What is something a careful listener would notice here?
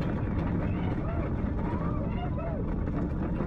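Riders shout and whoop excitedly.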